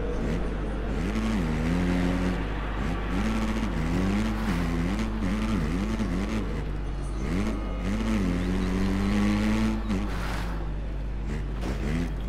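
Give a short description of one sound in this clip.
A dirt bike engine revs up and down, shifting gears.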